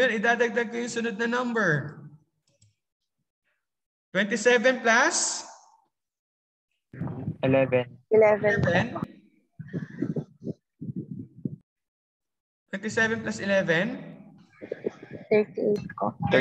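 A man speaks calmly and explains through a microphone, with pauses.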